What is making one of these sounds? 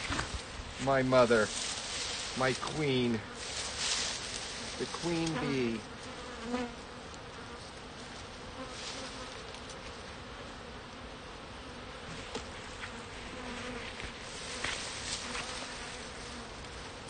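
Bees buzz steadily all around.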